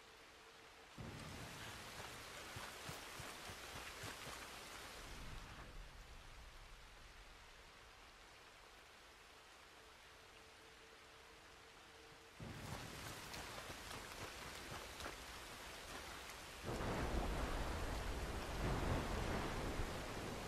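Footsteps tread over wet grass and gravel.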